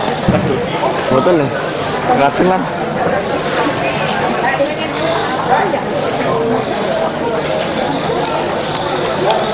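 A crowd of men and women chatter nearby in a large, echoing space.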